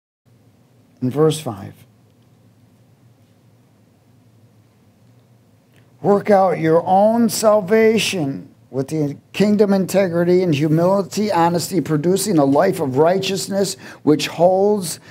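A man speaks calmly into a microphone, heard through loudspeakers.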